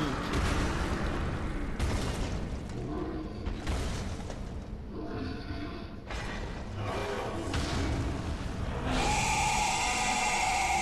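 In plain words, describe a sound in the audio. A huge beast growls with a deep, rumbling snarl.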